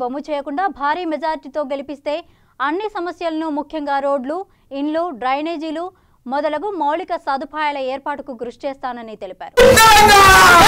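A group of women speak together in unison, close by.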